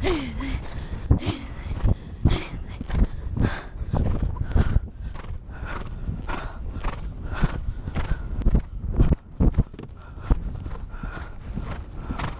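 A horse canters with hooves thudding on grass.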